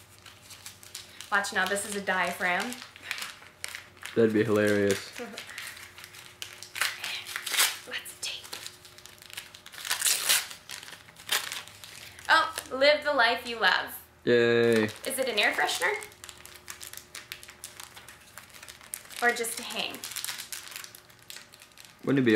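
Paper crinkles and rustles in a young woman's hands.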